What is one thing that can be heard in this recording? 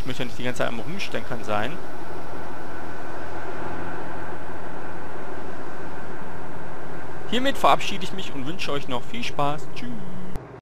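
A bus engine rumbles steadily as a bus drives past.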